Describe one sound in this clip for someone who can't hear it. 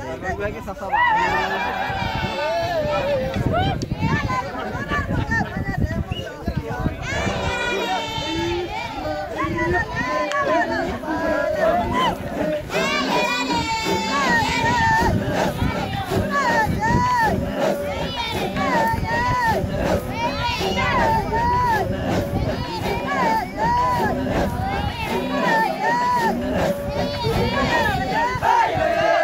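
A crowd of men chants and sings together outdoors.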